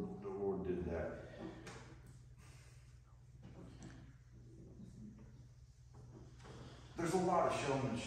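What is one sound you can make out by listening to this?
A middle-aged man speaks calmly in a room with a slight echo.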